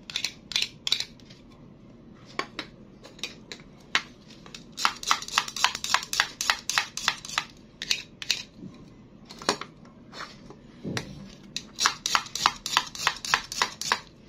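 A plastic knife taps and clicks against plastic toy food.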